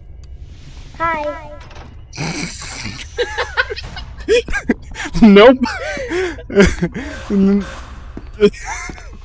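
A second young man talks and laughs close by.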